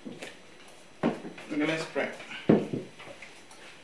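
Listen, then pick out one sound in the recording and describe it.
Dishes and a glass jar knock and clatter on a table nearby.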